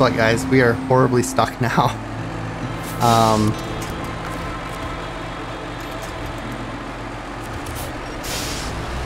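A truck engine rumbles steadily at low revs.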